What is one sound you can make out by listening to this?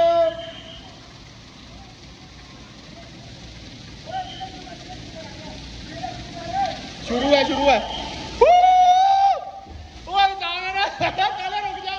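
Water pours and splashes steadily into a pool.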